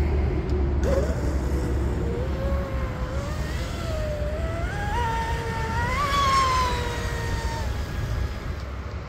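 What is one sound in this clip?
A small model boat motor whines across the water, rising in pitch and then fading.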